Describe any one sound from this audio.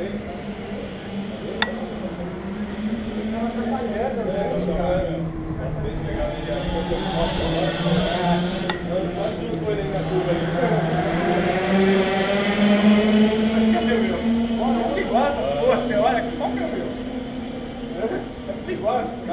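A kart engine idles close by, its drone rising and falling a little.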